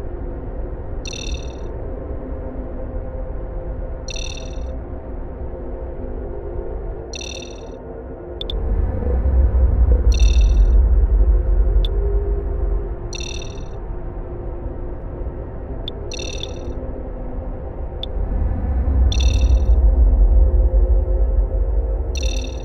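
A sonar beeps in short, high pings every few seconds.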